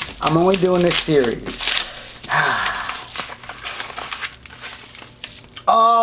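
A paper envelope rustles and tears open.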